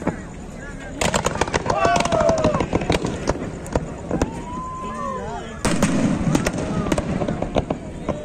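Fireworks crackle and bang loudly overhead.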